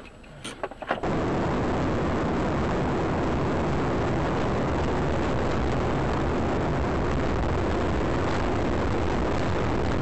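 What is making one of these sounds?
Tyres rumble steadily on a snowy road.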